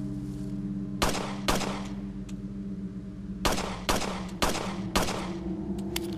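Pistol shots crack one after another.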